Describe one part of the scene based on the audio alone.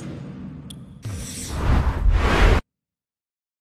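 A loud whooshing burst swells and cuts off.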